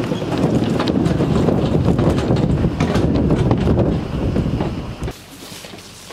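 Wind rumbles and buffets loudly against the microphone.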